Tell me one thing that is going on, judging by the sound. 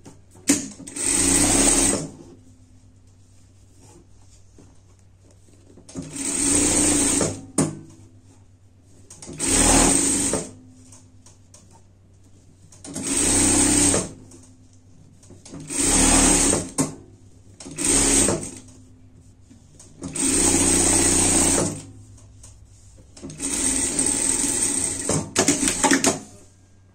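A sewing machine runs in short bursts of fast stitching.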